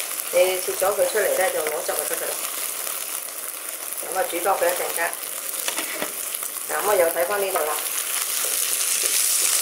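Tomatoes sizzle and bubble in a hot pan.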